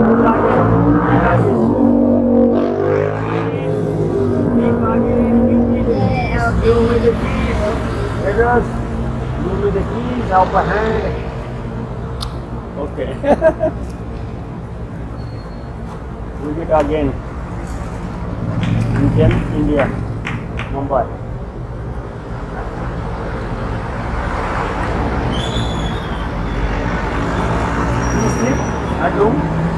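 Traffic hums on a busy street.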